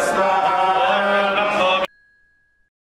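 Men chant together through a microphone.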